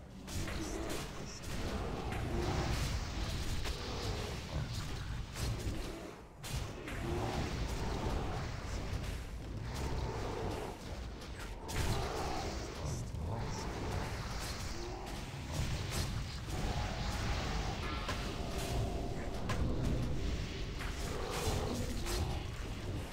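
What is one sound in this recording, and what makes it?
Magic blasts whoosh and crash in a fast battle.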